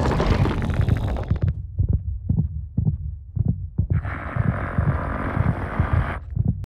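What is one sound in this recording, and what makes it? A monstrous creature's heart thumps deeply in a steady beat.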